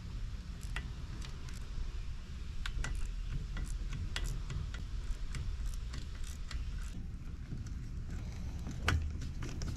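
Small plastic and metal parts click and clack as they are handled.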